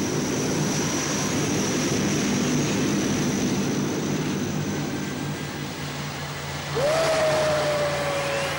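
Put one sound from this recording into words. A jet airliner's engines whine as it taxis.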